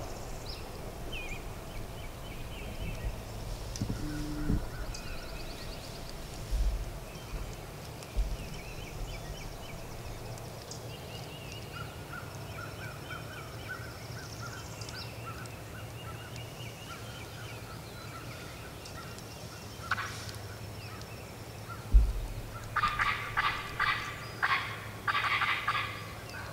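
Footsteps rustle through dry grass and leaves.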